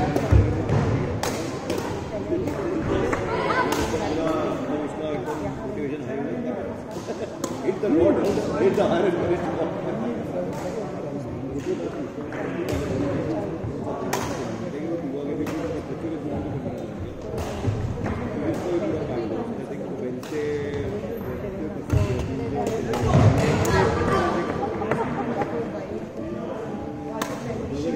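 Rackets strike shuttlecocks with sharp pops.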